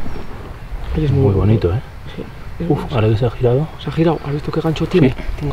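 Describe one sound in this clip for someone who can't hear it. A man speaks nearby.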